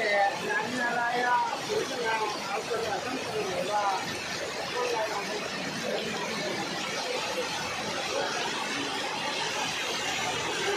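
Heavy rain pours down onto wet pavement and puddles outdoors.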